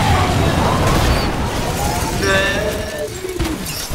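A car crashes with a loud metallic bang and tumbles.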